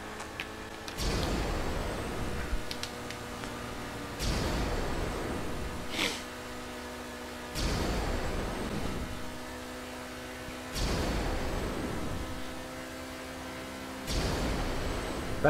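A car engine roars loudly in repeated bursts.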